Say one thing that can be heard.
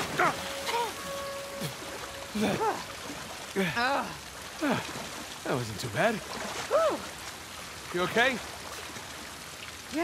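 Water sloshes and splashes as swimmers paddle.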